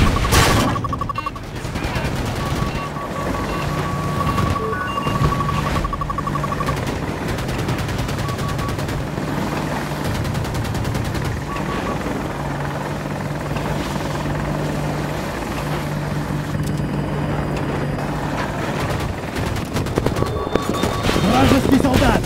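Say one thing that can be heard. A helicopter's rotor drones steadily throughout.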